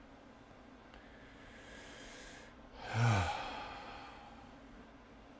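A man sighs deeply and loudly.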